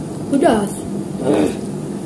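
A boy slurps noodles loudly.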